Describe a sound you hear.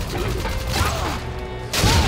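A weapon clicks as it is reloaded.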